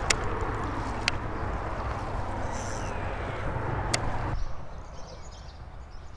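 Wind rumbles and blusters outdoors.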